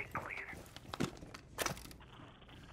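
A small electronic device clicks as it is set down.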